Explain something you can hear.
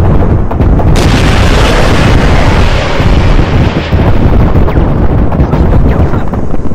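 A helicopter explodes with a loud blast.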